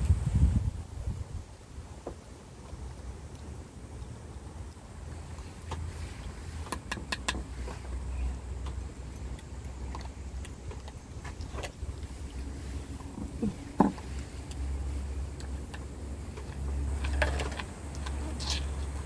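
A dog laps and chews food from a bowl close by.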